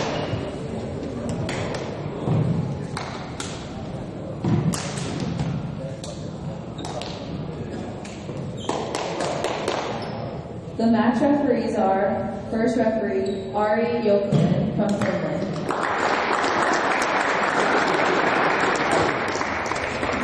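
A volleyball is struck and thuds on the floor in a large echoing hall.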